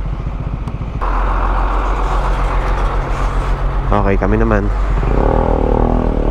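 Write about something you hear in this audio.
A diesel dump truck rumbles past.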